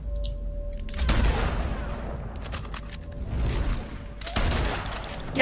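A rifle shot rings out with a long echo.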